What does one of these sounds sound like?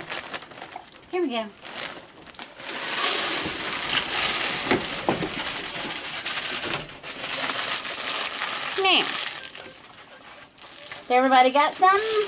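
A woman speaks softly to animals nearby.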